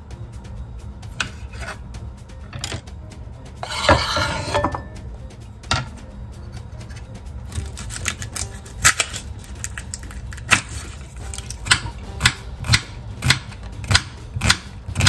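A knife chops on a cutting board with sharp, steady knocks.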